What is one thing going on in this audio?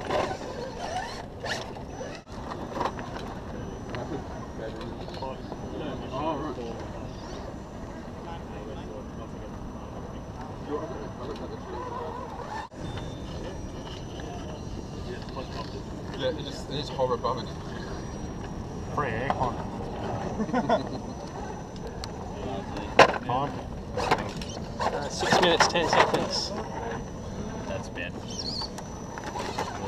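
A small electric motor whines as a toy truck crawls over rock.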